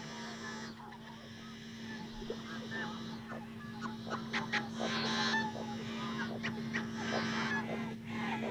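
Water birds call softly across open water.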